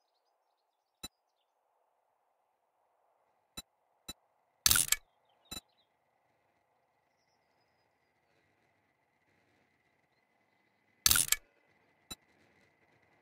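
Short game interface clicks and pops sound now and then.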